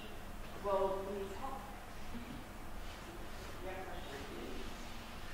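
A young woman speaks calmly into a microphone in a large echoing room.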